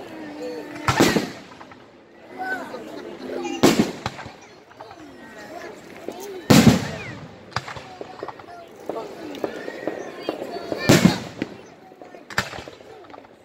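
Fireworks crackle and sizzle after bursting.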